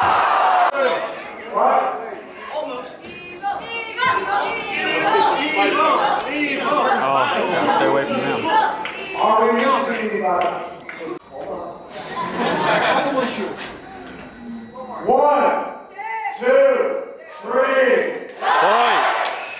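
A large crowd of young people chatters and shouts in a big echoing hall.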